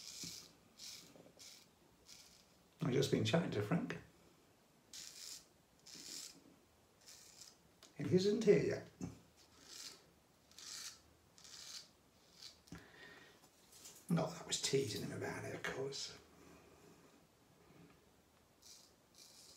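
A razor scrapes against stubble in short strokes.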